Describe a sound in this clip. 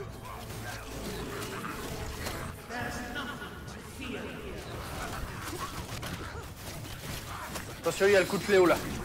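Magic spells burst and crackle in a fight.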